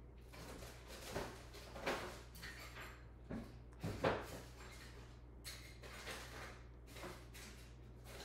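A cat licks soft frosting with quiet wet smacking sounds.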